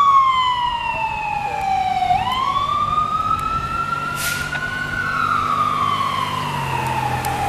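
An engine rumbles as a vehicle drives past.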